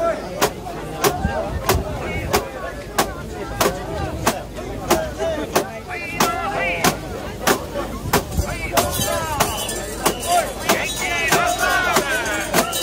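A large crowd of men chants loudly together outdoors.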